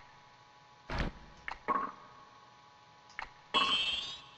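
Menu selection blips sound in short bursts.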